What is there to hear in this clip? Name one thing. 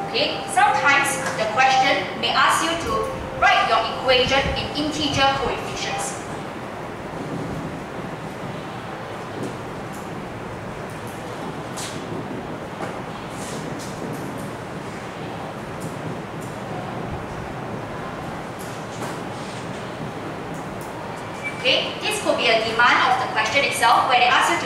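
A young woman speaks calmly, heard through a clip-on microphone.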